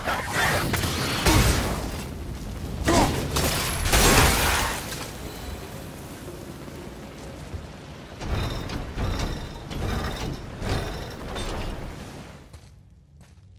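Jets of fire roar loudly in bursts.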